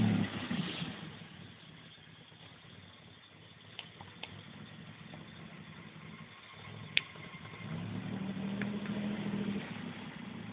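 A car engine idles softly in the distance, then revs up again.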